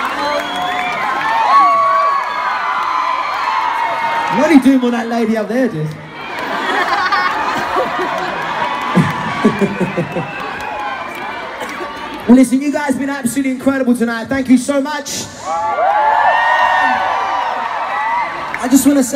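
A crowd sings along loudly, heard from within the audience.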